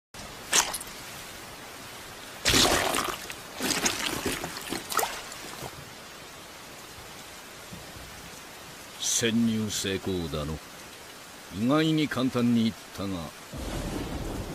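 Heavy rain pours steadily.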